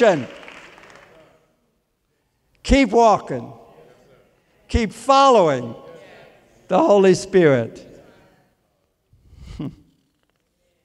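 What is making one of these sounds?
An elderly man speaks with emphasis into a microphone in a large echoing hall.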